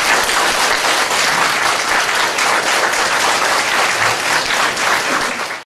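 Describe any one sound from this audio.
A choir of children sings together.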